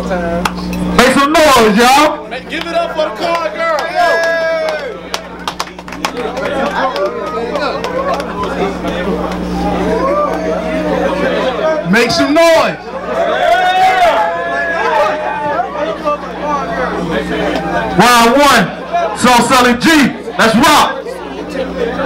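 A crowd of young men cheers and shouts.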